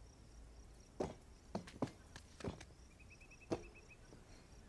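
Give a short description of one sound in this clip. Hands slap and thump against stone ledges.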